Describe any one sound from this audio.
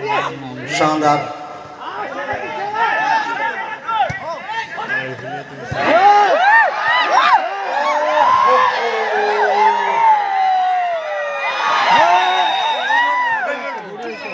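A large crowd outdoors shouts and cheers loudly.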